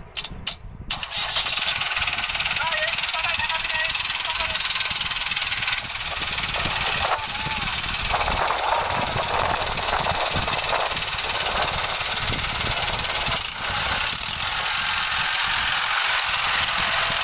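A tractor engine roars loudly.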